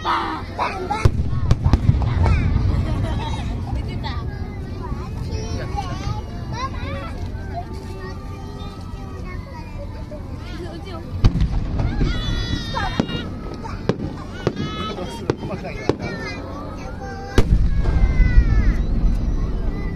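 Fireworks boom loudly overhead.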